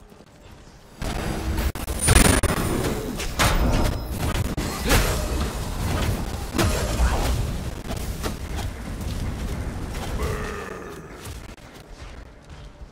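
Magic spells burst and crackle in a game fight.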